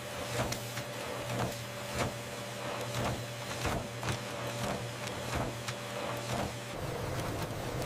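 A printing machine hums and clacks in a steady rhythm.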